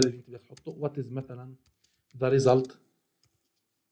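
A man speaks calmly into a microphone, heard close up.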